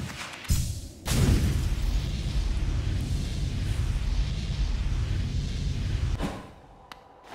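A rushing burst of noise whooshes as a small figure dashes forward.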